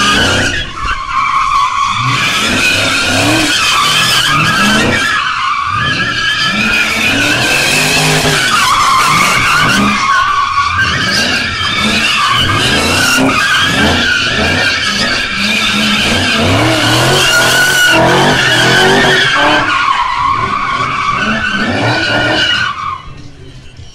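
A car engine revs hard and roars, rising and falling.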